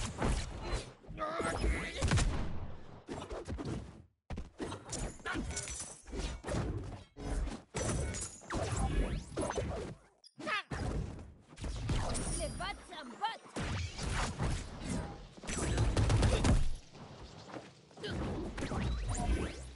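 Cartoon fighters land sharp blows with whooshing swings.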